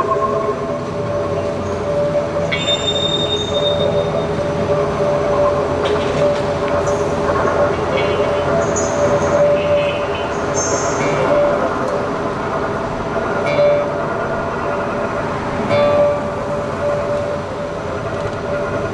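An acoustic guitar is plucked.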